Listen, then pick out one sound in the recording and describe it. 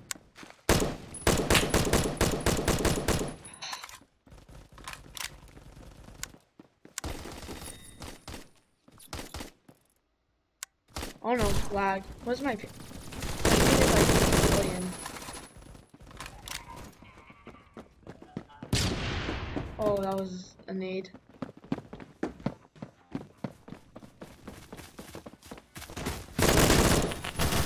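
Rapid gunfire bursts loudly from an automatic rifle.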